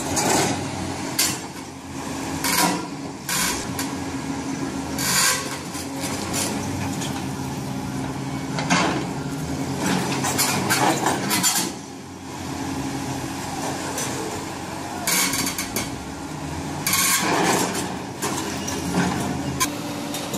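Stone blocks crack and scrape as an excavator arm pushes them apart.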